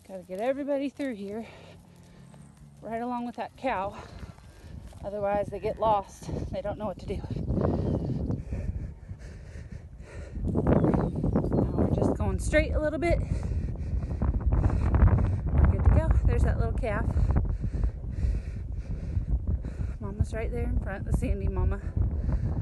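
Cattle hooves trample dry grass.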